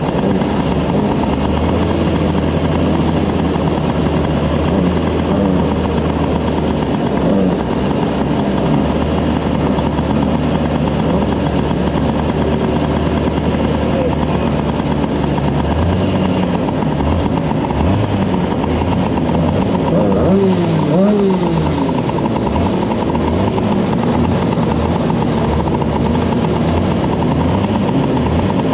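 A small kart engine idles loudly close by, sputtering and briefly revving.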